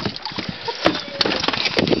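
A wet dog shakes water from its coat, spraying droplets.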